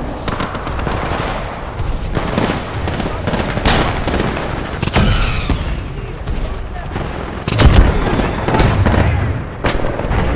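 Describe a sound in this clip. A rifle fires in sharp, rapid bursts.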